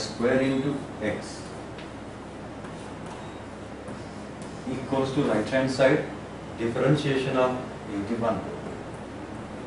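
A middle-aged man speaks calmly and slowly, with long pauses, in a room with some echo.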